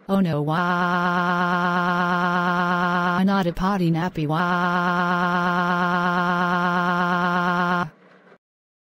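A synthetic young woman's voice wails in a long, drawn-out monotone cry.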